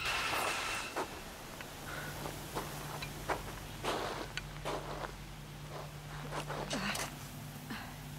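Footsteps crunch in snow, coming closer.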